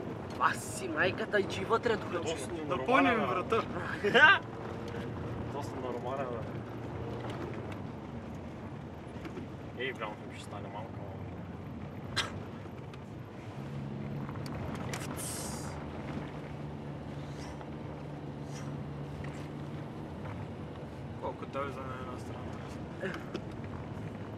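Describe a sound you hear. Tyres rumble and crunch over packed snow.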